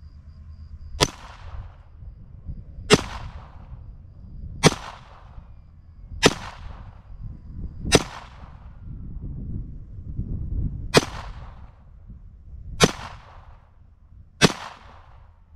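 .22 semi-automatic pistol shots crack one at a time outdoors, each echoing off the surroundings.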